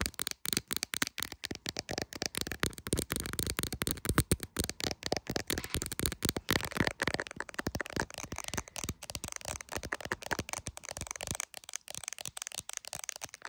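Long fingernails tap and click rapidly on a hard phone case, close up.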